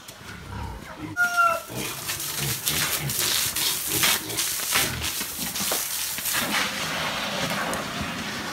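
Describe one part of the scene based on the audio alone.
Trotters patter and scrape on a wet floor.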